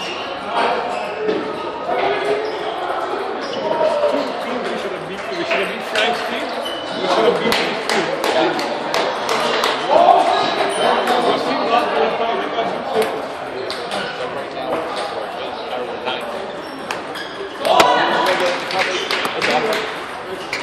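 Ping-pong balls click against paddles and tables in a large echoing hall.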